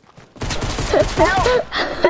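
A gun fires a shot nearby.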